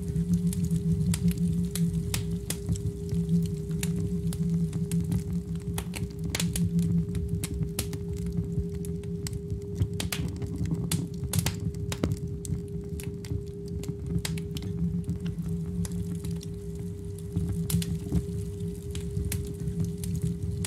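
Sharp clicking beats tick over the bass.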